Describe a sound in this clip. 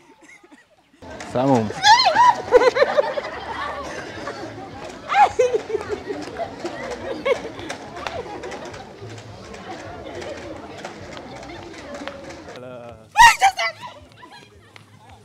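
A young woman screams in fright close by.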